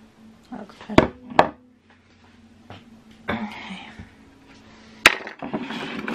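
A metal lid clatters onto a table.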